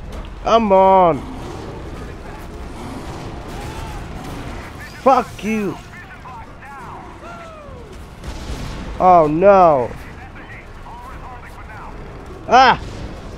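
A large creature lets out loud, wailing roars.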